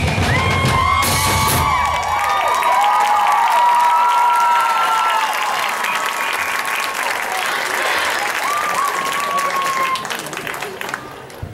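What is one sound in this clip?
A large crowd cheers and whistles outdoors, then quiets down.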